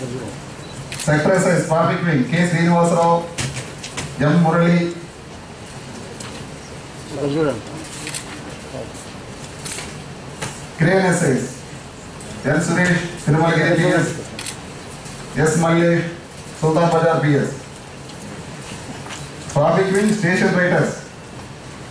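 A man speaks in short bursts close by.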